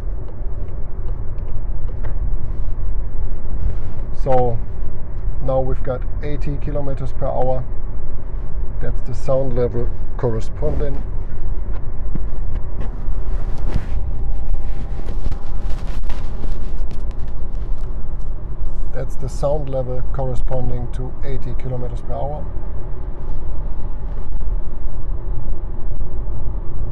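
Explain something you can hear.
A car's tyres and engine rumble steadily at motorway speed, heard from inside the car.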